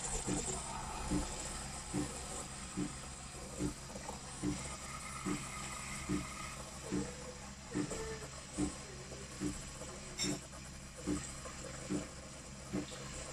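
A coffee machine's pump thumps in a steady, even rhythm.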